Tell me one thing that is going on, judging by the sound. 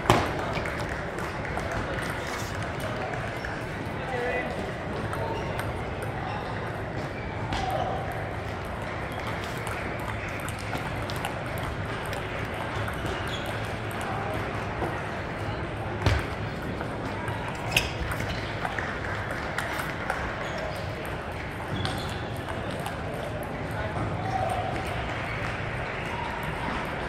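A table tennis ball clicks sharply against paddles and the table.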